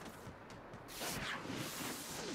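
A muffled explosion bursts at a distance.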